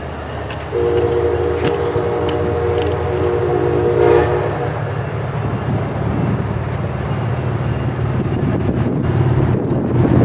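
A train approaches from a distance with a low rumble.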